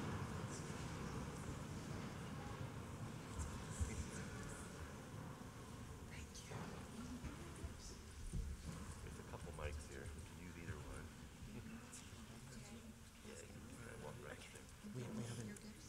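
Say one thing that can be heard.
Men and women murmur softly at a distance in a large room.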